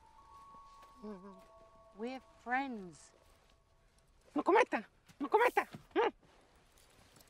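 A small ape-like creature chatters and squeals.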